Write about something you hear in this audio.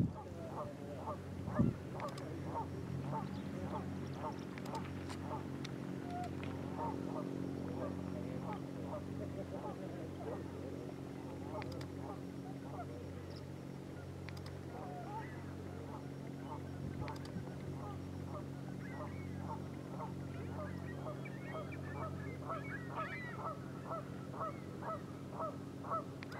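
A lake freighter's diesel engine hums far off across the water.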